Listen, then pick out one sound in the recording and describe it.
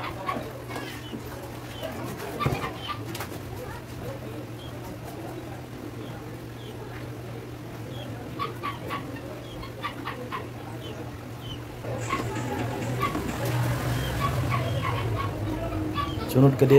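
Metal parts clink and knock against each other.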